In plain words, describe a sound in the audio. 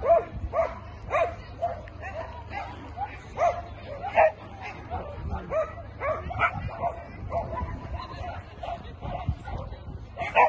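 A dog barks repeatedly and excitedly outdoors.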